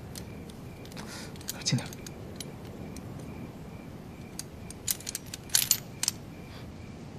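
Small metal pieces click and clink as fingers handle them.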